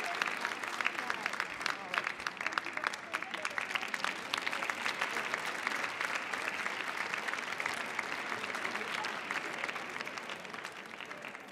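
An audience applauds in a large hall, the clapping slowly fading.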